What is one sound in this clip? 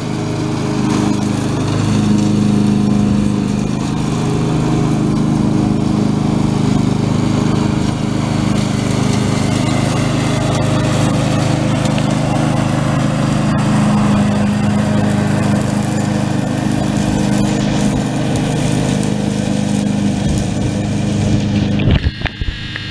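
A ride-on mower's engine hums steadily close by.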